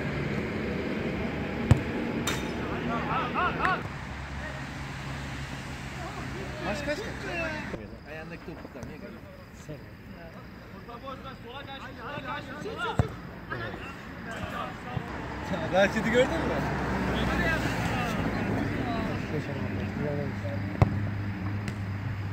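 Football players shout to each other across an outdoor pitch.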